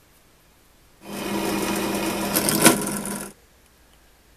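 A drill press whirs as it drills into metal.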